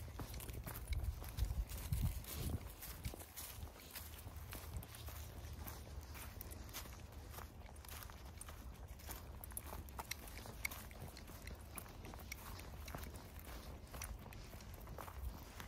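Footsteps crunch through dry leaves outdoors.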